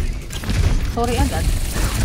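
Energy pistols fire rapid zapping shots.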